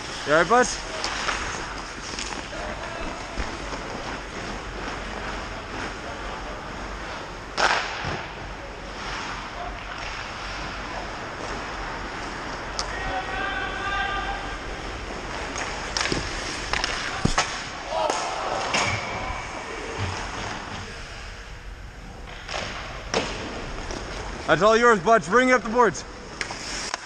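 Players shout to one another across the rink.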